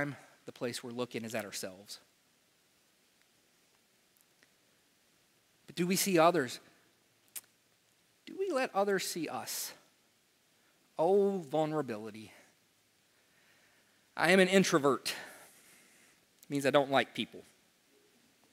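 A man speaks calmly to an audience in a room with a slight echo, pausing between phrases.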